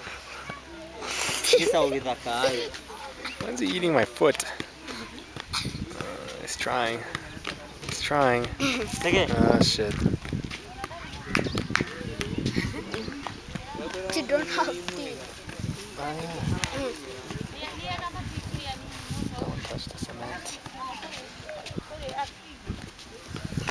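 Young children talk and laugh excitedly close by.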